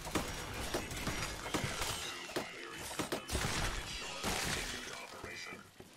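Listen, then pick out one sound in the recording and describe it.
A laser beam fires with a crackling zap.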